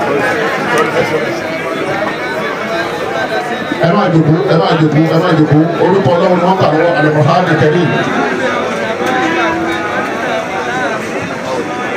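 Men greet each other and talk with animation close by.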